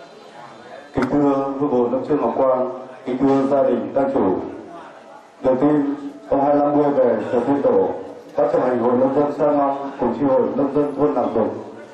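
A man sings loudly through a microphone and loudspeaker.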